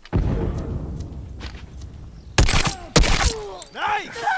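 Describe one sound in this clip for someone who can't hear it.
A rifle fires loud shots in short bursts.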